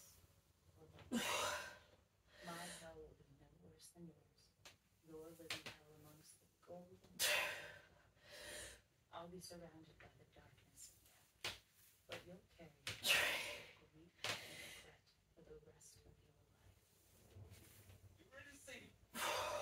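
A woman exhales sharply and breathes hard between lifts.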